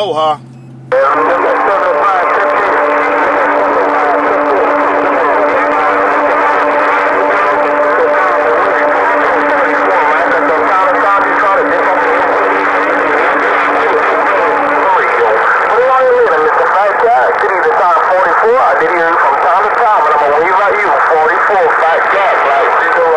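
A radio loudspeaker crackles and warbles with garbled static.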